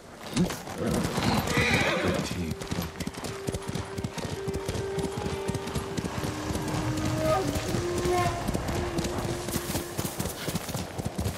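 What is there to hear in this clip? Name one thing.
Horse hooves thud on sand at a gallop.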